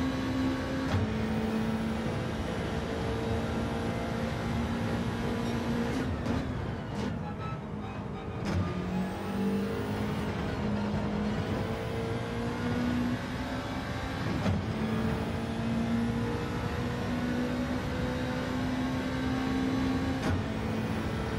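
A racing car's gearbox clicks sharply through gear changes.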